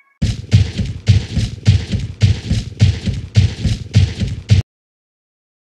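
A cartoon elephant stomps heavily in a steady rhythm.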